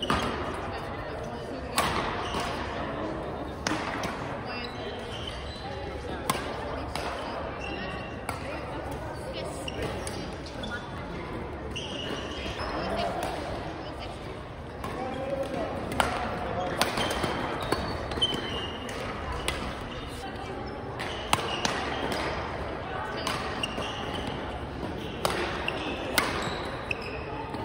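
Sounds echo around a large hall.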